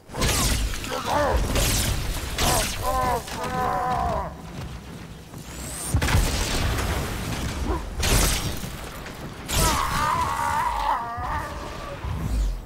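Alien creatures cry out as they are struck.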